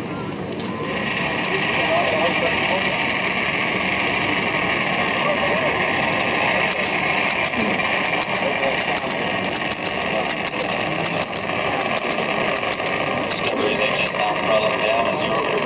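A distant rocket engine roars and crackles.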